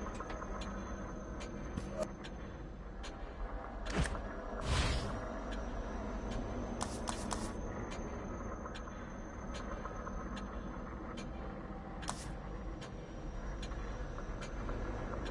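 Short menu clicks and chimes sound again and again as options change.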